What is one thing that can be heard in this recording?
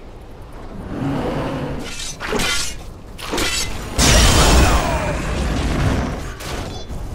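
Spell blasts and weapon hits clash loudly in a game battle.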